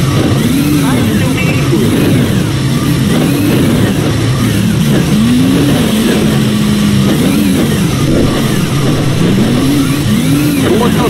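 A bus engine drones and revs up and down.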